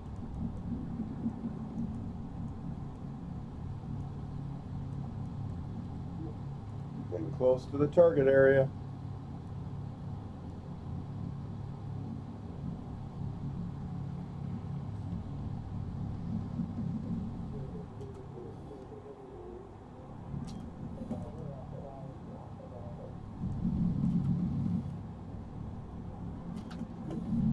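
Propeller engines of a bomber drone steadily.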